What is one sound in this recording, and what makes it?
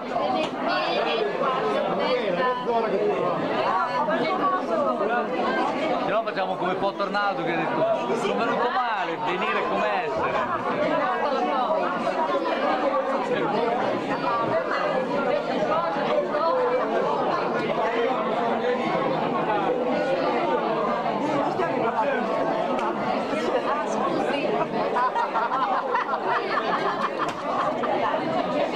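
A large crowd of adults chatters loudly all around in an echoing hall.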